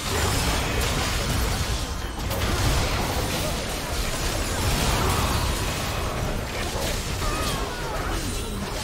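Spell blasts and impacts crackle and boom in a video game battle.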